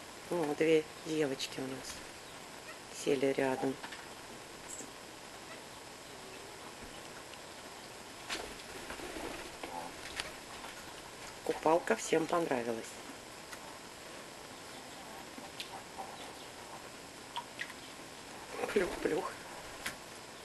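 A parakeet squawks and chatters in short bursts.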